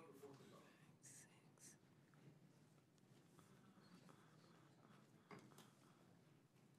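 Papers rustle close by.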